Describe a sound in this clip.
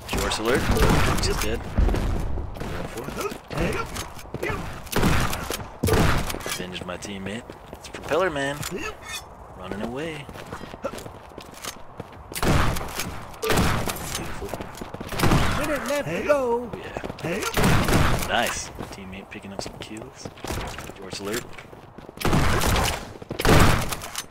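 A shotgun fires in loud blasts.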